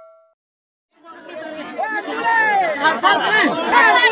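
Men talk loudly and excitedly close by.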